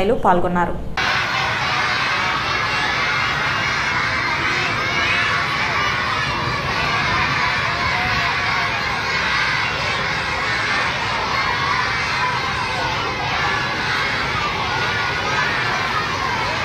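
A crowd of children chant and shout loudly outdoors.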